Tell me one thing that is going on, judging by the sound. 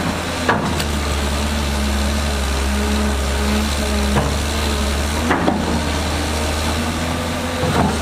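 Metal clanks sharply now and then.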